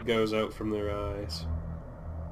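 A huge monster lets out a loud, shrieking roar.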